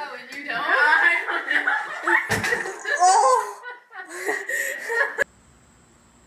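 Young girls shriek and laugh loudly nearby.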